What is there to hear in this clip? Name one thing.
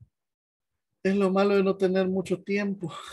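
A man speaks steadily through an online call.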